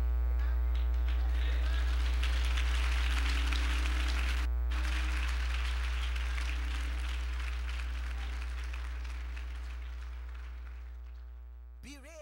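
A congregation claps and cheers.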